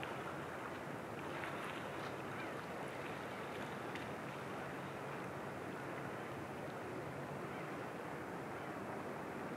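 Small waves lap gently against the rocky shore.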